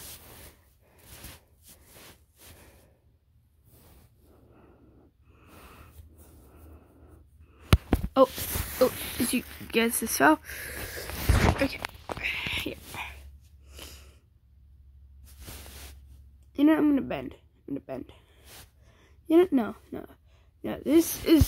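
A finger taps on a tablet's touchscreen.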